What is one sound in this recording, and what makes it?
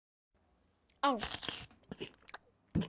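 A cartoon panda chatters and giggles in a squeaky voice.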